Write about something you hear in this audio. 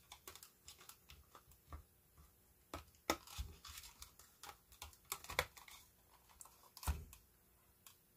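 Plastic parts click and snap as fingers pry a small case apart.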